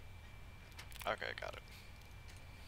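A lock clicks and rattles as it springs open.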